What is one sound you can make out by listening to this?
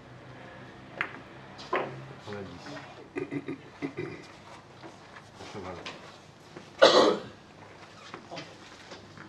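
Billiard balls click sharply against each other.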